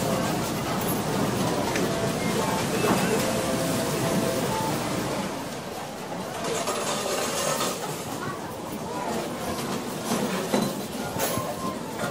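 Slot machines chime and jingle in a busy, echoing hall.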